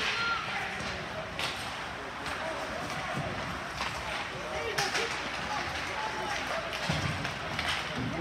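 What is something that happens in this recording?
Skate blades scrape and carve across ice.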